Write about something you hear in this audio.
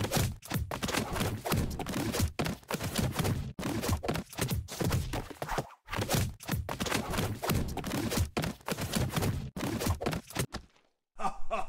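Cartoon punches thud and smash again and again.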